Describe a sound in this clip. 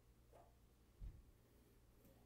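A plastic ruler is set down on paper with a soft tap.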